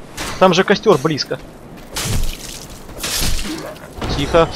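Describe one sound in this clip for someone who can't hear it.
A sword slashes and strikes flesh.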